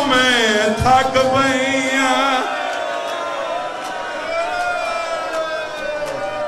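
A young man chants loudly and passionately through a microphone.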